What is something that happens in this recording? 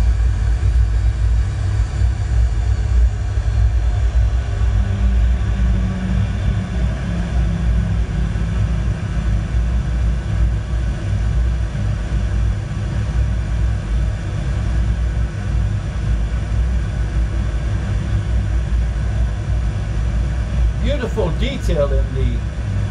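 A car engine rumbles steadily as it drives along.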